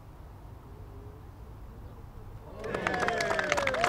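A golf ball drops into the cup with a soft rattle.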